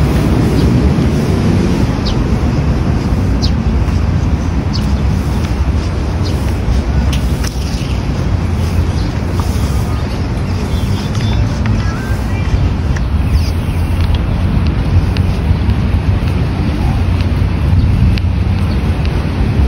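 Footsteps tap on paving at a steady walking pace.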